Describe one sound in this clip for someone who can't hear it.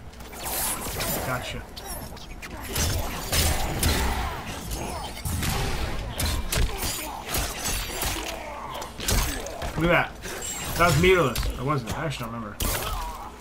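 Punches and kicks land with heavy thuds and smacks.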